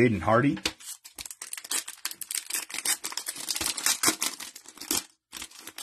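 A plastic wrapper crinkles and tears open.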